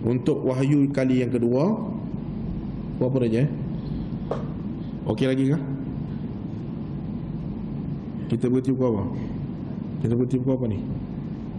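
A man speaks into a microphone in short, drawn-out phrases with long pauses.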